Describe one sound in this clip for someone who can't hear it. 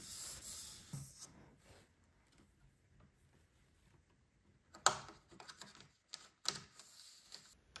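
A cable rustles and taps as it is pushed into place.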